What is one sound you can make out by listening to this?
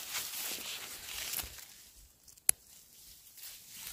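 Scissors snip through a mushroom stem.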